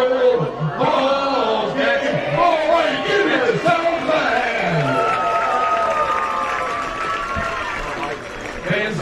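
An elderly man sings loudly into a microphone.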